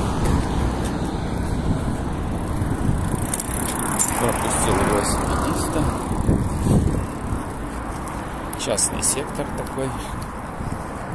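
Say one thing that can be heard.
Bicycle tyres roll over asphalt.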